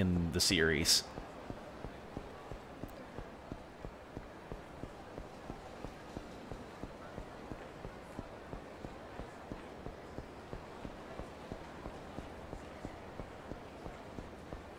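Footsteps run quickly and steadily on pavement.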